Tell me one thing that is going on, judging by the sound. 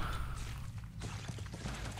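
A weapon fires with a sharp zap.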